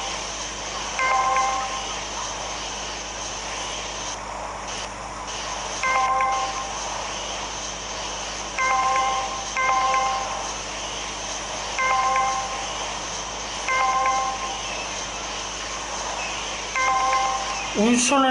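A bright game chime rings out again and again.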